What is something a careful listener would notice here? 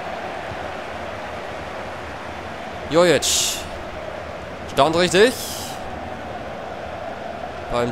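A large crowd murmurs steadily in a stadium.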